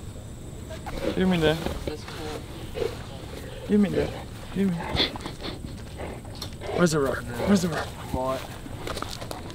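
A young man talks to a dog with animation.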